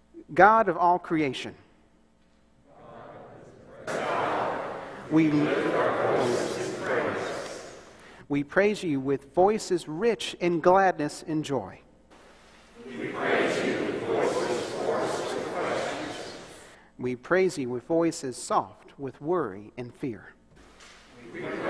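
A man reads aloud calmly through a microphone in a large echoing room.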